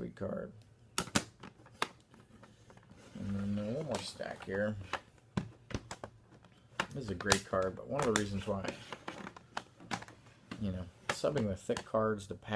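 Plastic clicks and rattles in a man's hands.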